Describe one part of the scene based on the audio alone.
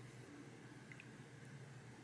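A spoon stirs and clinks softly against a mug.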